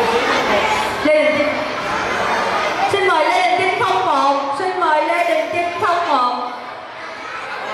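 A woman speaks calmly into a microphone over a loudspeaker.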